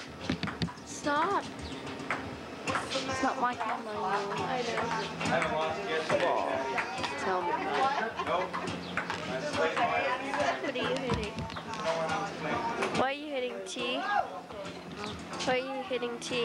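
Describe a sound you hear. Women and young men chatter loudly nearby.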